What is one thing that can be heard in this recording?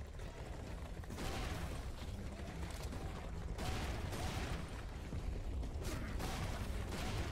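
Gunshots crack from a game.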